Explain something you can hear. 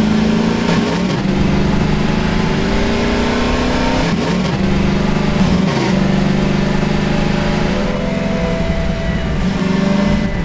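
A buggy engine roars loudly, its pitch rising and dropping as gears shift.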